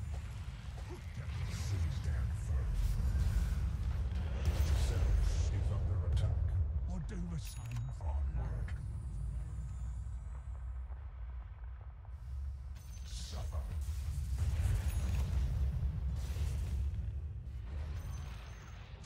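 Spell blasts and impacts crackle and whoosh in a video game.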